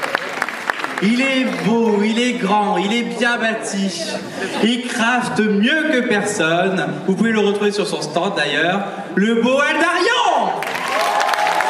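Women sing together through microphones, amplified over loudspeakers.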